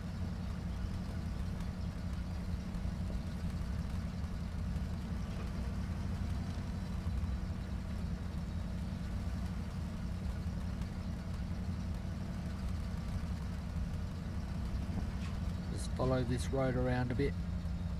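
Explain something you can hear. A truck engine rumbles steadily at low speed.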